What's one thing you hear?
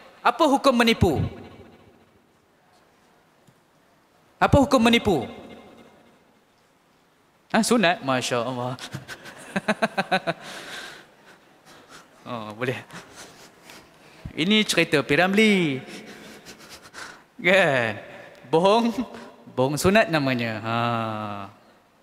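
A young man speaks with animation into a microphone, with pauses.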